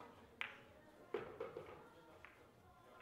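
Billiard balls click together.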